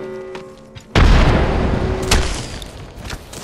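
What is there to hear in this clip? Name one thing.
Energy bolts crackle and hiss in a sudden loud burst.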